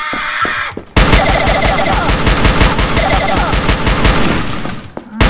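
A rifle fires in a rapid, steady burst of shots.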